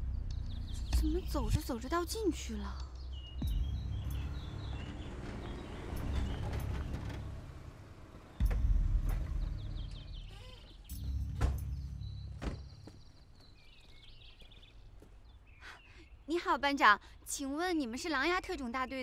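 A young woman speaks with surprise, close by.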